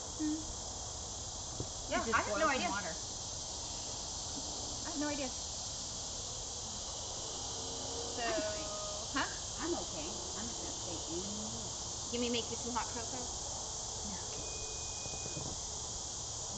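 Water splashes gently in a small pool.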